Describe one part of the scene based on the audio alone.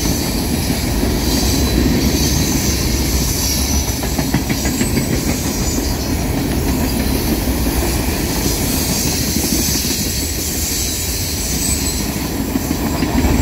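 Freight cars rumble past on steel rails.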